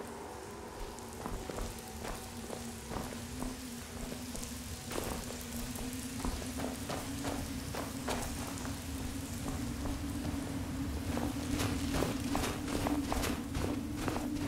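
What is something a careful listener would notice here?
Footsteps crunch steadily over stone and snow.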